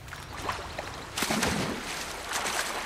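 Water splashes loudly as someone dives in.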